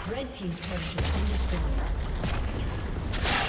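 A heavy blast booms as a tower is destroyed.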